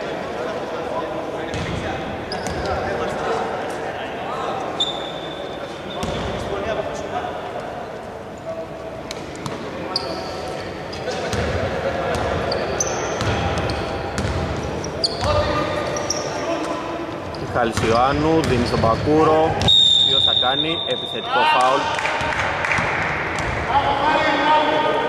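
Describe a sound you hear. Men shout and call out to each other in a large echoing hall.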